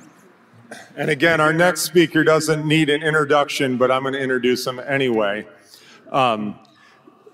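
A man speaks through a loudspeaker in a large echoing hall.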